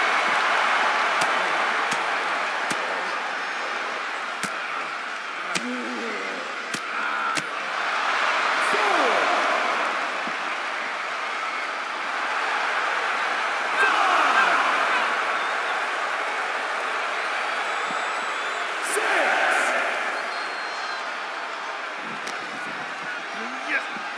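A large crowd cheers and roars steadily, swelling at times.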